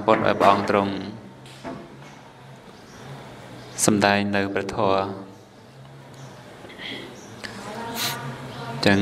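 A man speaks calmly into a microphone, laughing at times.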